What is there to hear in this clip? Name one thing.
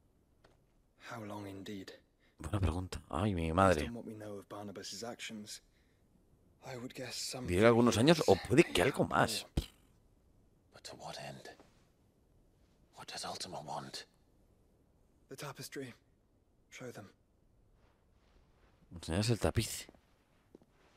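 A young man speaks calmly and quietly, in short exchanges with pauses.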